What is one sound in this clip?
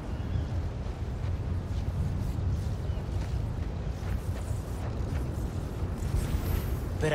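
Electricity crackles and buzzes in short bursts.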